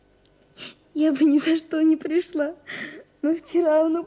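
A girl sobs and wails loudly close by.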